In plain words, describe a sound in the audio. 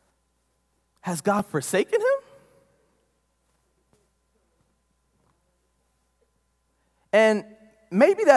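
A man speaks with animation into a microphone in an echoing hall.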